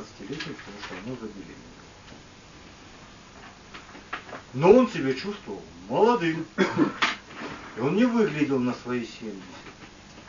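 A man speaks slowly to a small audience, pausing between phrases.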